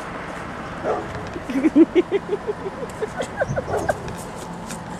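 A man laughs loudly in quick bursts nearby.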